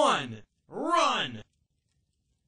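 Two short electronic tones sound one after another, like a countdown.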